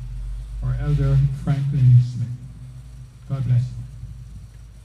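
An older man speaks slowly into a microphone in an echoing room.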